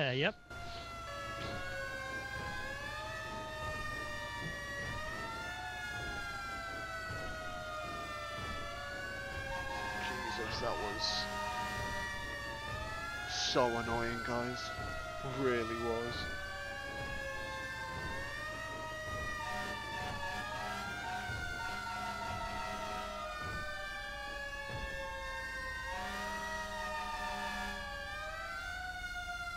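A fire engine siren wails, rising and falling.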